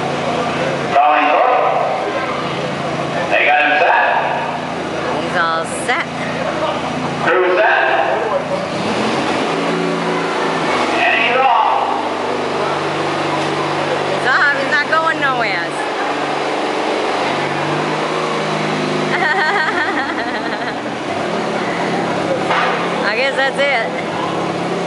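Men talk and call out nearby.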